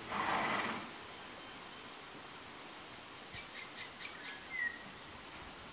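A plastic scraper scrapes and ticks softly against a hard surface.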